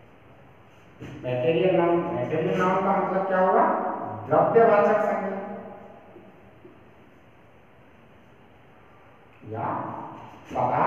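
A man speaks calmly, as if explaining.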